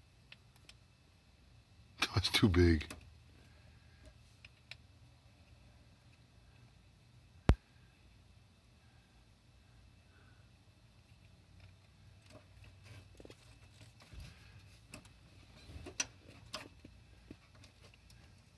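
A battery knocks and clicks against metal parts.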